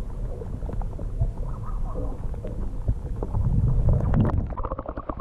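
Water rumbles and gurgles close by underwater.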